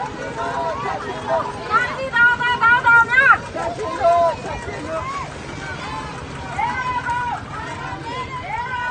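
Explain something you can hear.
Several men shout and talk excitedly nearby.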